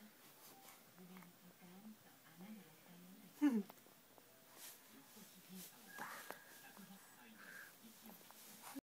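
A toddler babbles softly close by.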